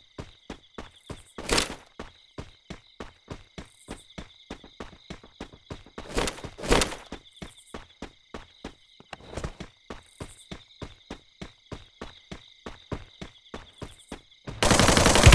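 Footsteps run on a wooden floor in a video game.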